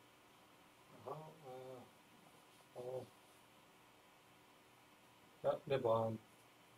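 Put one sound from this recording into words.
A man speaks nearby in short phrases with pauses.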